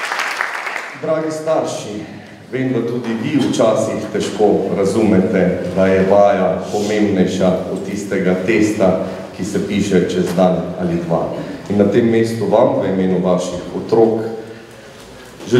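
A man speaks calmly into a microphone over a loudspeaker in a large hall.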